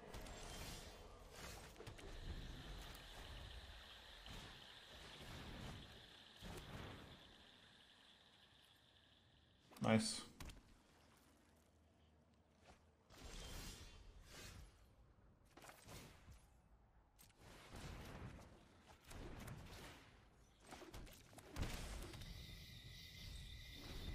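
A man talks casually into a close microphone, with pauses.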